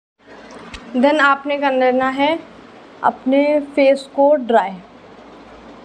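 A young woman speaks calmly and close to a small microphone.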